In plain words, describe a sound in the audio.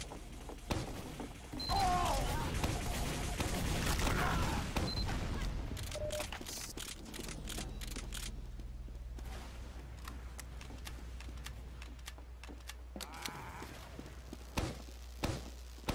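Heavy footsteps thud on hard floors.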